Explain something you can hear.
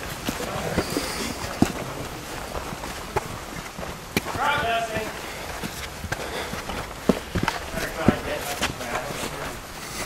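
Footsteps crunch and scuff on dry leaves and rocky ground outdoors.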